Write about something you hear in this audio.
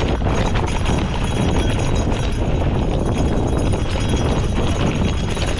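Bicycle tyres rattle and crunch over a rough dirt trail.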